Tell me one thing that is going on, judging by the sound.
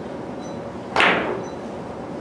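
A cue stick strikes a billiard ball with a sharp click.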